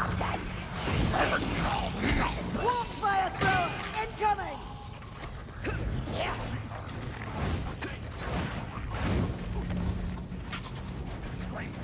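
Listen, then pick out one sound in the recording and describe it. A heavy weapon strikes and crunches into a creature again and again.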